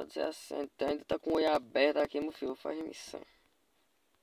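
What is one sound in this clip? A man talks with animation into a microphone.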